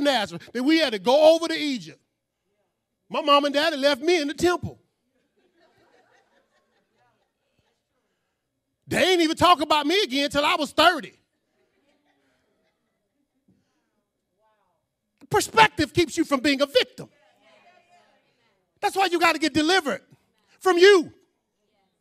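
A man preaches with animation into a microphone over loudspeakers, pausing between phrases.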